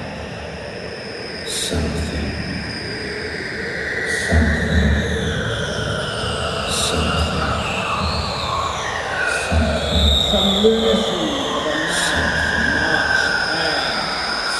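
A man sings through a headset microphone over loudspeakers in a large hall.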